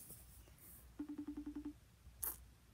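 A phone beeps with a ringing tone through its speaker.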